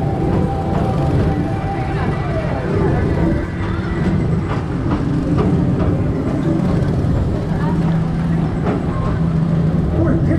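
Small go-kart engines drone below.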